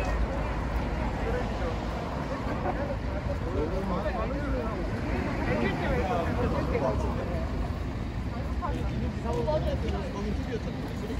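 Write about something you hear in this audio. Men and women talk in a mix of voices nearby.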